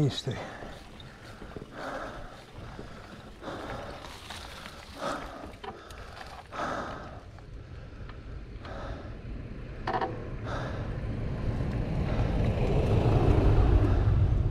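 Bicycle tyres roll and rattle over a rough lane.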